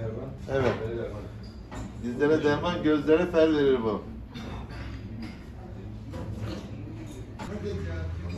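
A man talks cheerfully and close by.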